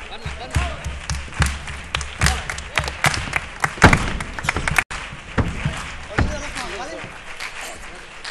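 A group of performers sings together on a stage, heard from a distance.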